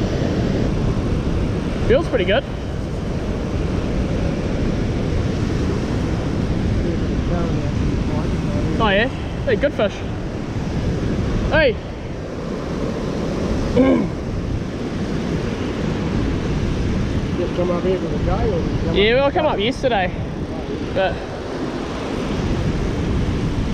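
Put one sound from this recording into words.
Fast water rushes and churns close by.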